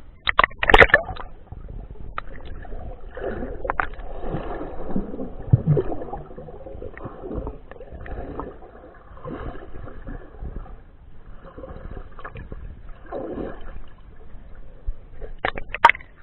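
Muffled underwater sloshing and bubbling rumbles softly.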